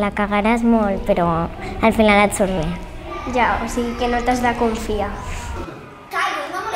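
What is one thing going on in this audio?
A young girl speaks close to a microphone.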